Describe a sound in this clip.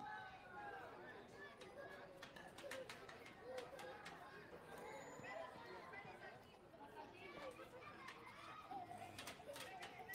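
Children and adults call out and chatter from around an open field.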